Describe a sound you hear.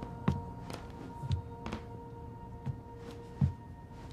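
A young woman sighs softly nearby.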